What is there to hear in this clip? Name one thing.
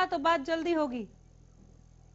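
A woman speaks clearly into a microphone.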